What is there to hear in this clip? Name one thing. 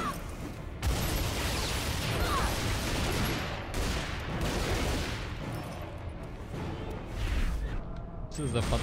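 Pistols fire in rapid bursts.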